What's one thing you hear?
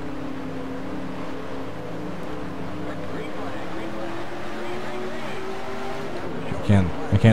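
Racing car engines drone steadily at high speed.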